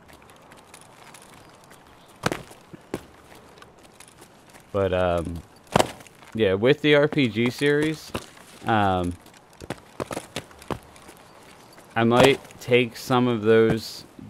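Footsteps scuff over grass and rock.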